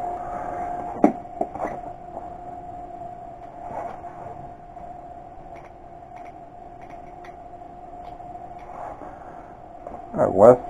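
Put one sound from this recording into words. Small metal parts clink and rattle as hands handle them.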